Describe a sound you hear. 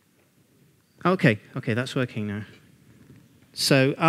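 A man speaks calmly to a room, slightly distant.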